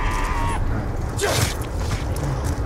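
A zombie snarls up close.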